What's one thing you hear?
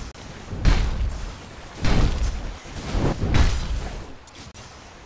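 Magic blasts and weapon clashes burst out in a fantasy battle.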